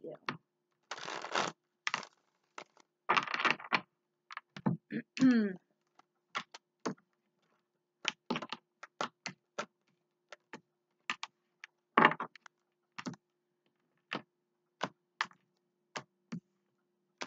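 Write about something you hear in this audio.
Cards tap and slap softly on a wooden table.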